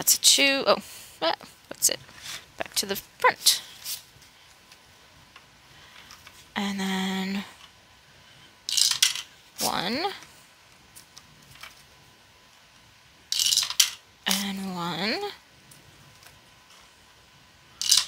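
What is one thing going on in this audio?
Paper banknotes rustle and crinkle as hands handle them.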